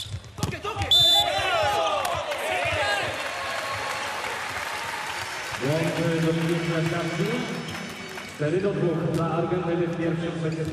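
A crowd in a large echoing hall cheers loudly.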